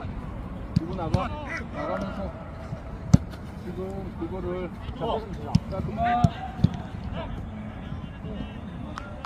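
Young men call out to each other on an open field.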